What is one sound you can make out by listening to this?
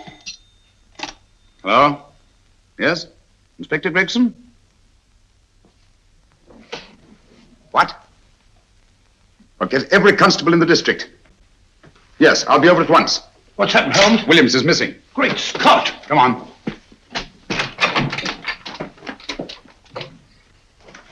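A man talks into a telephone in short bursts.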